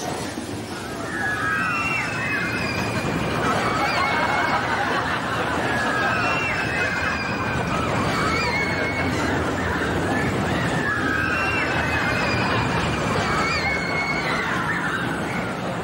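Women scream and shriek with excitement on a ride.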